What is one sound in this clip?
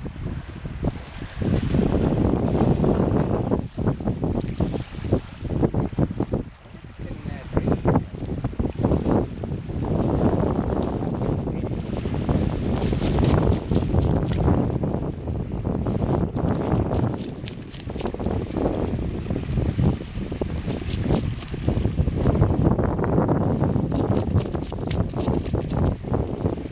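Small waves lap gently at the shore.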